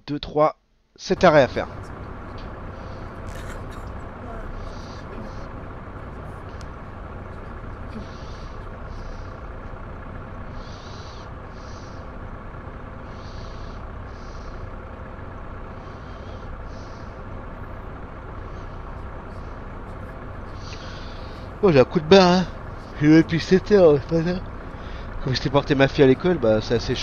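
A bus engine hums steadily at low speed.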